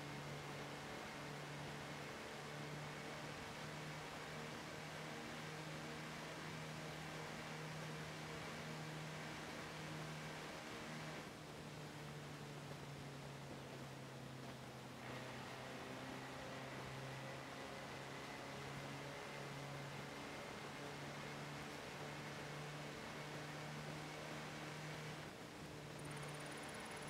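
An engine hums steadily as a vehicle drives along.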